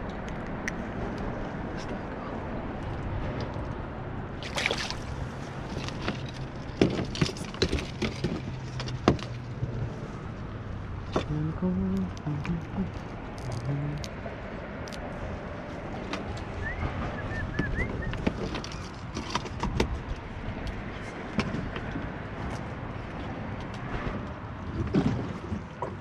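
Light wind blows outdoors on open water.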